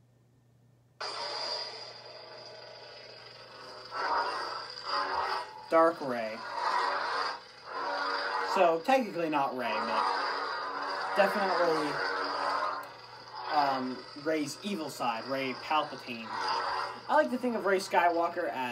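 A toy lightsaber hums steadily.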